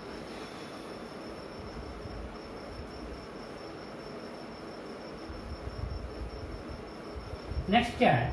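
A man wipes a whiteboard with a soft rubbing sound.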